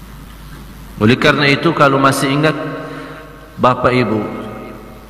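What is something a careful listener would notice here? A man preaches with emotion into a microphone, his voice echoing.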